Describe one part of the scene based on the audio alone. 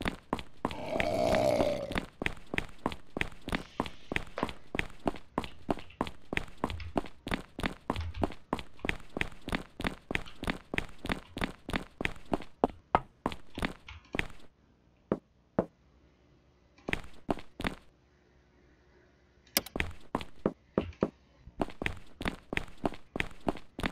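Footsteps run quickly at an even pace.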